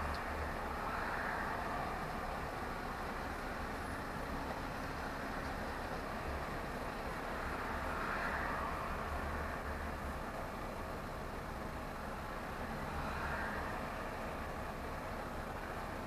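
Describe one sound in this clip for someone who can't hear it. Traffic hums by on a busy road.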